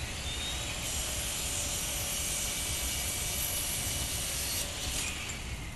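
A power saw grinds loudly through a metal lock.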